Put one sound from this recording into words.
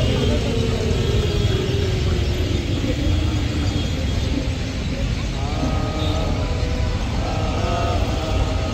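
A crowd sings softly outdoors.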